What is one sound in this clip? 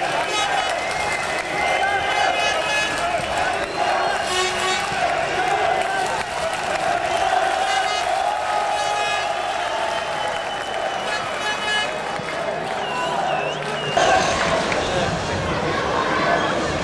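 A crowd murmurs and calls out across a large open stadium.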